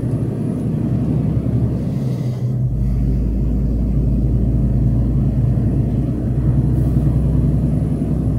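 A car engine hums low and steady while driving.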